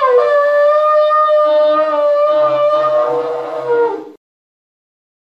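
Women sing a long, held note together, close by.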